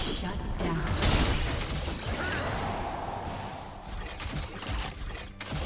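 Game spell effects crackle and burst during a fight.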